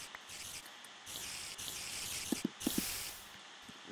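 A spider hisses.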